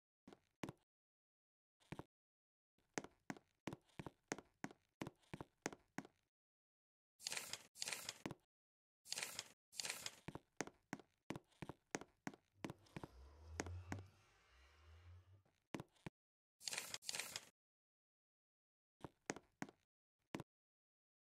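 Footsteps tap quickly and evenly on a soft floor.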